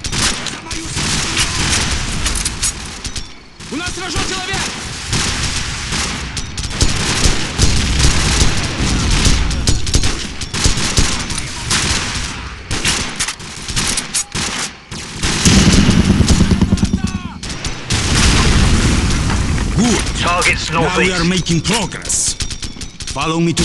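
Rifle shots ring out.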